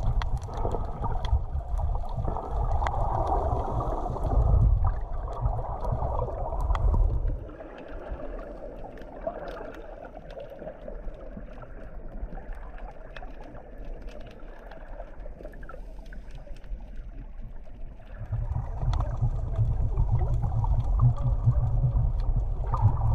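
Water rumbles and gurgles around an underwater microphone near the surface.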